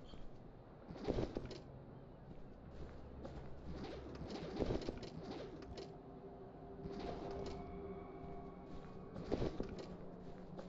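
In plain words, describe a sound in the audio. Suitcases thud heavily onto a hard floor.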